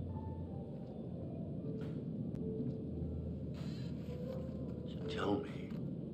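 A middle-aged man speaks in a low, calm voice.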